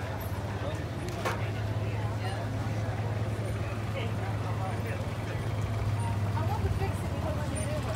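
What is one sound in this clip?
A crowd of people chatters outdoors at a distance.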